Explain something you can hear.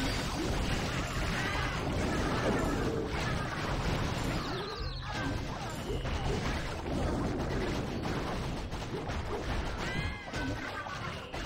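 Game explosions and battle clashes sound continuously.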